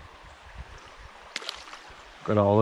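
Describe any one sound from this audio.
A fish splashes back into shallow water.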